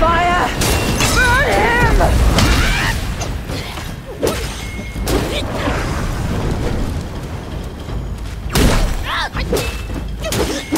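A monster screeches with wavering cries.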